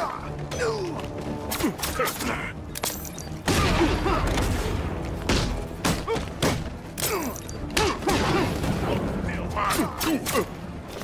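Punches and kicks land with heavy thuds in a fast brawl.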